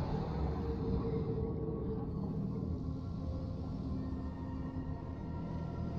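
A spacecraft engine hums as it flies past.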